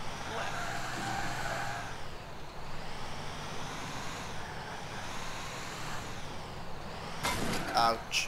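A heavy truck engine rumbles steadily.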